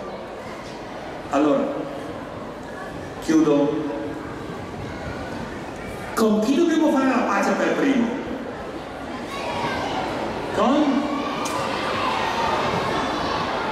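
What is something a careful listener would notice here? A large crowd of children murmurs and chatters.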